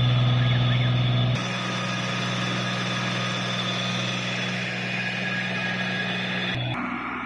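A truck's pump engine hums steadily close by.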